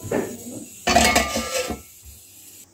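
A metal lid clanks onto a pot.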